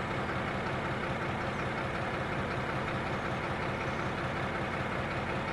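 Train wheels roll and clatter over the rails.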